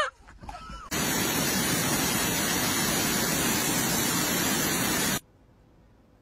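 Water rushes steadily over a weir.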